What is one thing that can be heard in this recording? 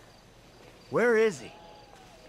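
A man asks a short question loudly.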